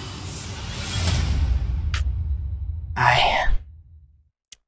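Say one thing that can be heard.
A man screams in agony.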